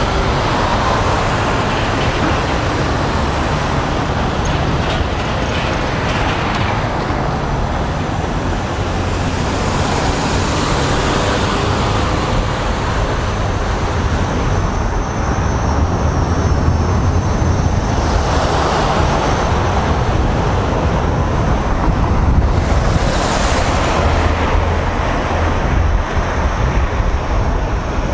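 Wind buffets a microphone loudly outdoors.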